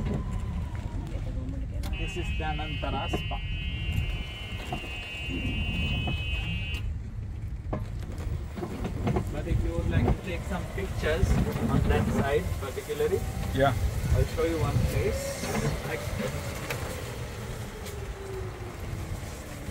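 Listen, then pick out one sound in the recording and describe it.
An electric cart hums and rolls along a paved path outdoors.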